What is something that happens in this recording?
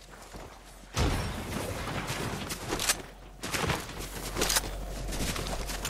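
Footsteps patter quickly through grass.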